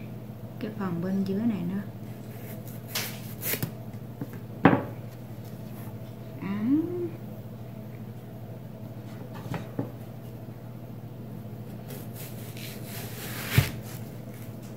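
A cleaver chops and thuds into a watermelon on a cutting board.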